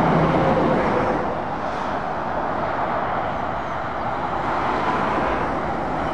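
A heavy truck's engine rumbles as it approaches.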